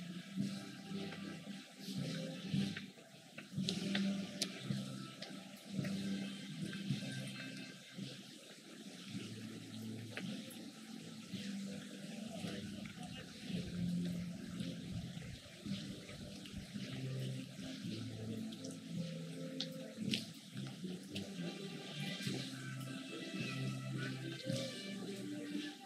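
Many people walk on a paved road with shuffling footsteps.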